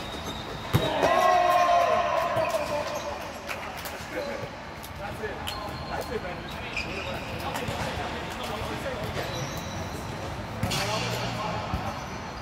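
A ball is struck with sharp slaps.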